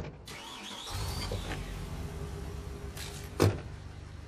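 A van engine starts and idles with a low rumble.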